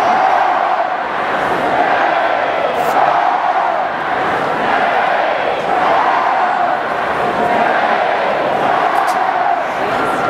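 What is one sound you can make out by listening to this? Drums beat along with the band.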